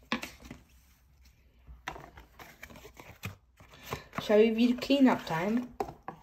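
A cardboard box is slid open and rustles in someone's hands.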